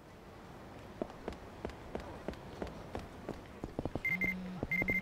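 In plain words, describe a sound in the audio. Footsteps slap quickly on pavement.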